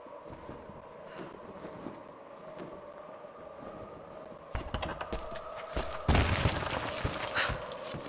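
Footsteps thud on stone and wooden planks.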